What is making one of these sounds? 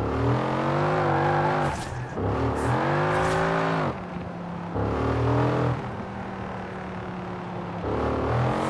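A car engine revs hard, rising and falling as gears shift.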